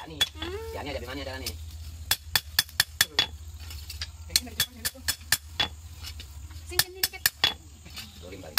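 A hammer rings sharply on hot metal against an anvil.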